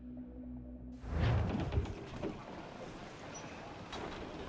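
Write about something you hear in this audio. Wind and waves rush around a sailing ship.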